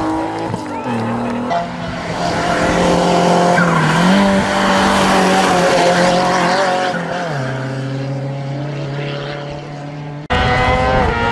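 A second race car engine howls loudly as it passes.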